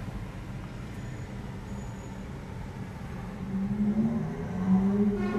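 A car hums low from inside the cabin and grows louder as it speeds up.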